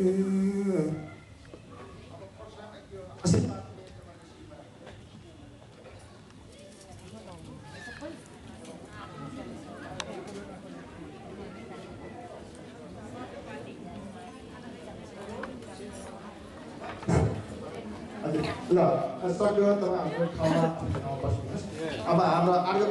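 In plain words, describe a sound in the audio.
A crowd of people chatters and cheers in a large hall.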